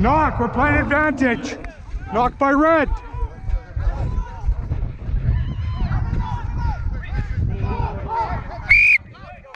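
Young men shout loudly to each other close by.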